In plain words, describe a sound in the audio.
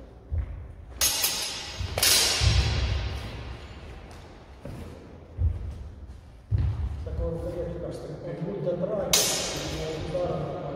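Swords clash sharply and ring out in a large echoing hall.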